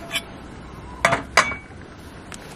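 A pan clatters as it is set down on a burner.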